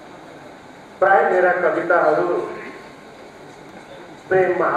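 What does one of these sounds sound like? A man recites expressively into a microphone in a reverberant hall.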